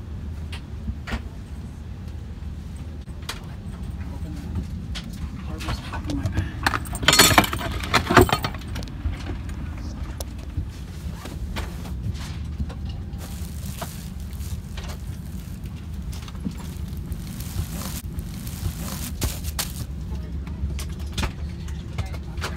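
A low, steady aircraft cabin hum runs throughout.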